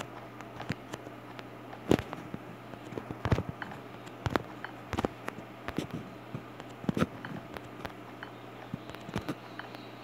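Building blocks click into place one after another.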